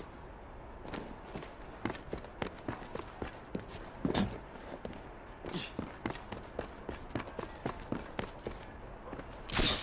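Footsteps patter quickly across roof tiles.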